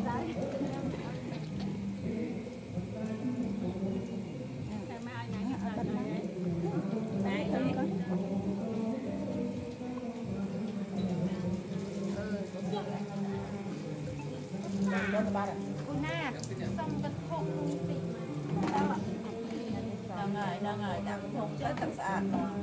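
A group of men and women chant together in a steady, droning voice.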